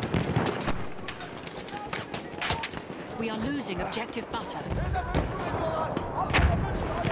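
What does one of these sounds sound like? Gunshots crack in scattered bursts across a battlefield.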